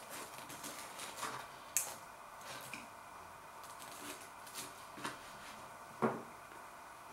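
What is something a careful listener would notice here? A knife and fork click and scrape on a plate.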